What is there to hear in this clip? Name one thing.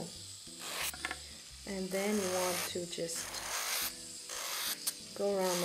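An electric nail drill whirs steadily while filing a nail.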